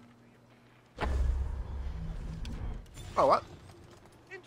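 An arrow whooshes and strikes with a thud.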